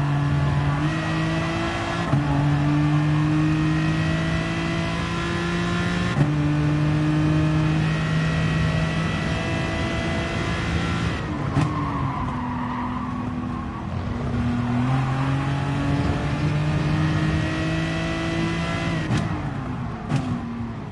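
A racing car engine roars steadily, climbing in pitch and dropping sharply at each gear change.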